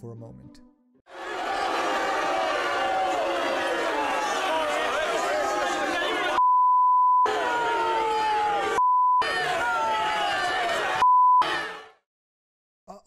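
A crowd of people shouts and chatters noisily outdoors.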